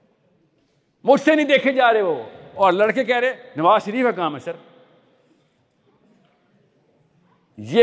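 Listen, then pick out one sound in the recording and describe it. A young man speaks with animation through a microphone in a large echoing hall.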